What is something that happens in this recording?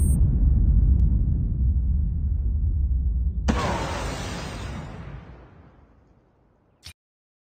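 A deep explosion rumbles and slowly fades away.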